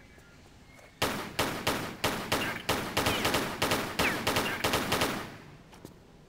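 Pistol shots ring out rapidly, one after another, echoing.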